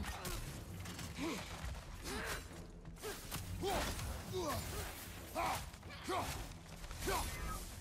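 Metal blades clash and scrape with sharp ringing hits.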